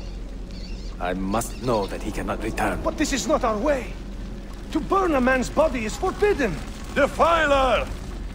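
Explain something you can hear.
A young man speaks with urgency, close by.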